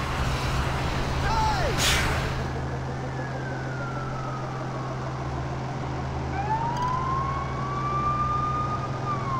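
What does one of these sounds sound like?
A vehicle engine hums steadily as it drives along.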